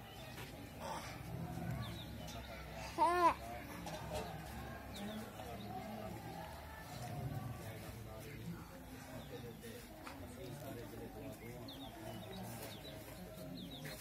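A large crowd of men and boys murmur quietly together outdoors.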